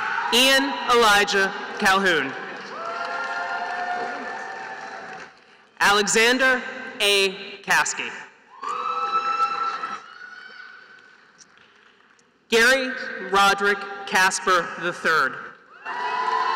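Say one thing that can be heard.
A man reads out names over a loudspeaker in a large echoing hall.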